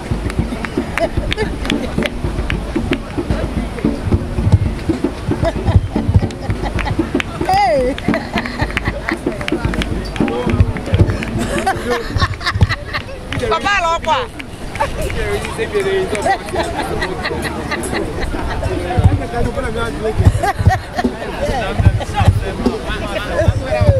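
A crowd of people chatter and cheer nearby.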